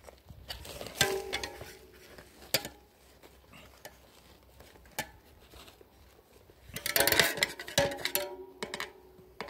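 A bicycle wheel's rim and spokes ring briefly when struck.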